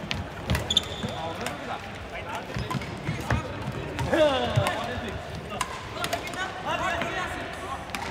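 Many people chatter and call out in the distance.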